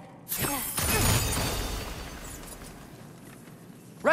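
A magical blast explodes with a loud roaring burst.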